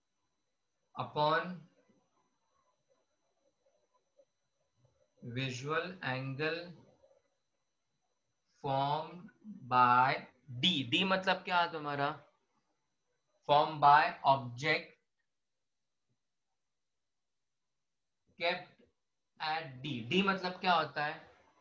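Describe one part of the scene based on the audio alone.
A man speaks calmly and clearly, close by, pausing between phrases.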